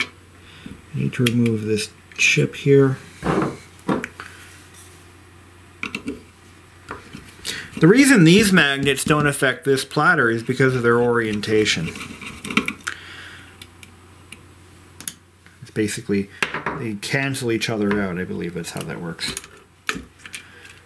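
Small metal parts click and tap under fingers.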